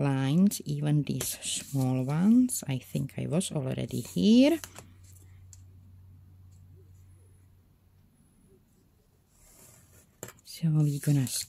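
A pointed tool scrapes lightly across paper.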